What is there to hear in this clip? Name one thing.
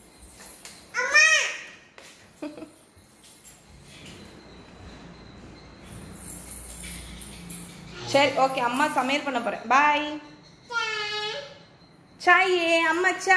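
A little girl squeals and babbles excitedly nearby.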